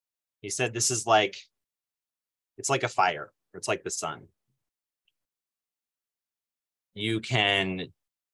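A man reads aloud slowly and calmly, heard close through a microphone, with long pauses.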